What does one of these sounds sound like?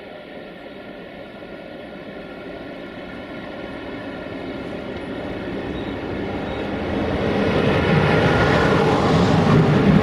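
An electric locomotive hums as it approaches and passes close by.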